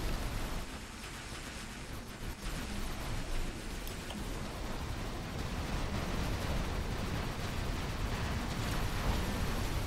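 Heavy gunfire and explosions rumble and crackle throughout.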